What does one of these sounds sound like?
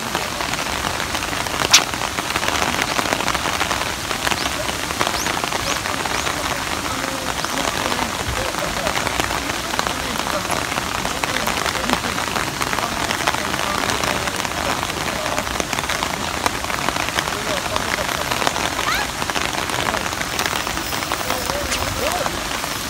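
Rain patters steadily outdoors.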